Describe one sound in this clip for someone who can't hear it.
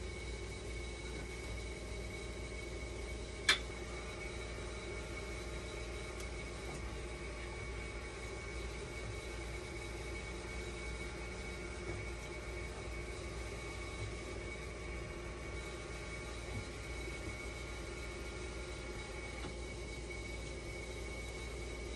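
A dialysis machine runs with a steady hum.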